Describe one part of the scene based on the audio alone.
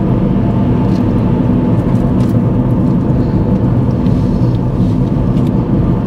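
Tyres roll with a low rumble on the road.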